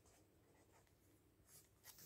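A pen scratches on paper.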